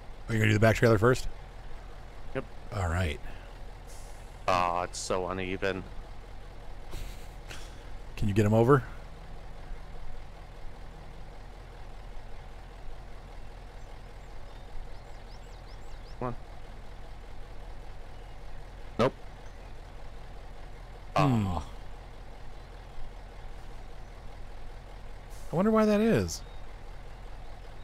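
A heavy truck engine idles with a low, steady rumble.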